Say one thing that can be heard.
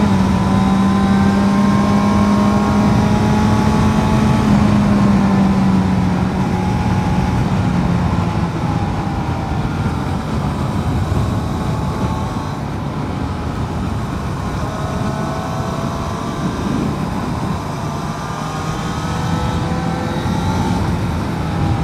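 A motorcycle engine hums steadily, its pitch rising and falling as the rider speeds up and slows down.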